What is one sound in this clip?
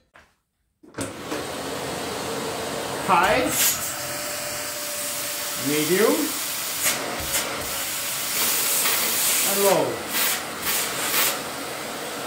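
A vacuum cleaner runs with a loud, steady whooshing roar.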